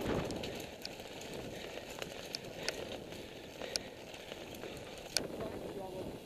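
Bicycle tyres rattle over cobblestones.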